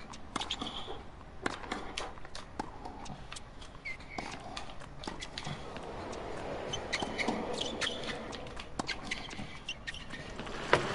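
Tennis balls are struck back and forth with sharp pops.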